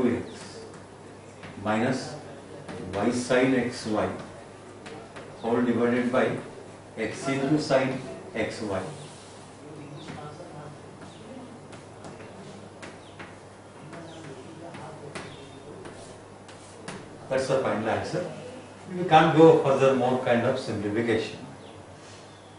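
An elderly man speaks calmly and clearly, as if explaining.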